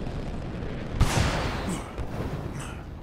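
A heavy thud lands on a rooftop.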